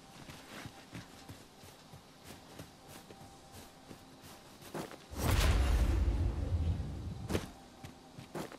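Weapon blows strike in a fight, with loud heavy thuds.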